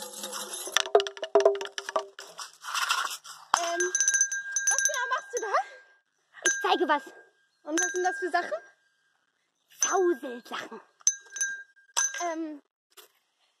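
A young woman speaks and exclaims with animation, close by.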